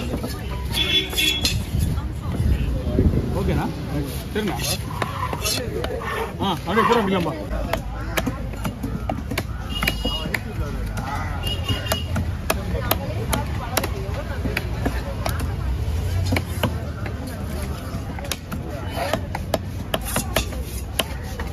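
A heavy knife chops through fish onto a wooden block with sharp thuds.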